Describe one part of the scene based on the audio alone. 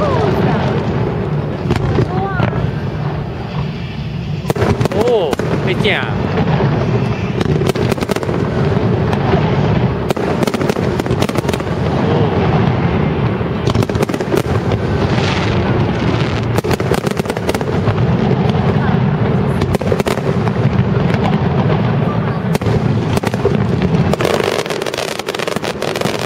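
Fireworks burst and crackle overhead in quick, repeated bangs.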